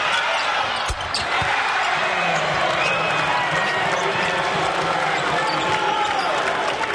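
A crowd cheers loudly and claps.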